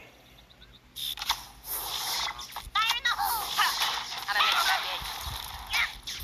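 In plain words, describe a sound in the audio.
Cartoon battle sounds clash and whoosh.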